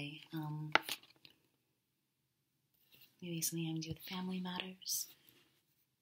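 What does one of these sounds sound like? Playing cards slap softly onto a table.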